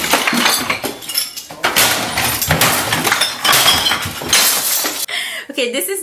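Objects crash and clatter in a room.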